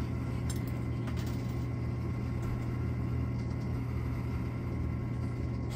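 An arcade machine hums steadily with a low drone.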